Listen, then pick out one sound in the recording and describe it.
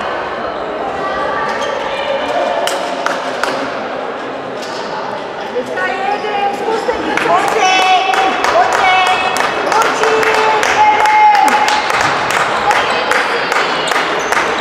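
Sneakers squeak sharply on a wooden floor in an echoing hall.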